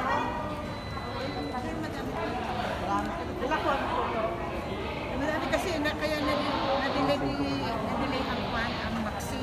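An elderly woman talks animatedly, close by.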